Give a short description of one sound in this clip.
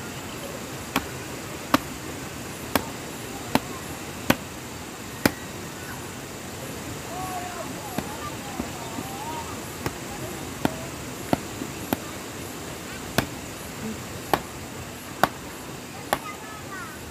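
A mallet knocks sharply on a wooden stake, again and again.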